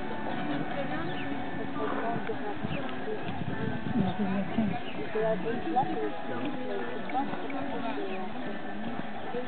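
A horse's hooves thud on soft sand at a canter.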